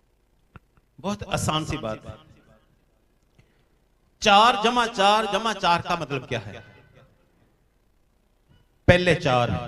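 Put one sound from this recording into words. An elderly man speaks slowly and with feeling into a microphone, with pauses between phrases.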